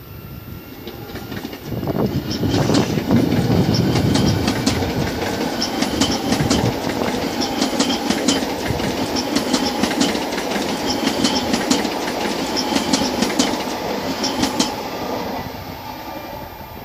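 A high-speed electric train rushes past.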